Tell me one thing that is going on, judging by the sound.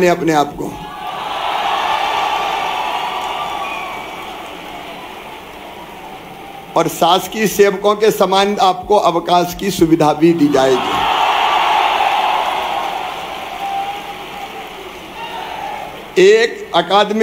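A large crowd cheers and claps in a big echoing space.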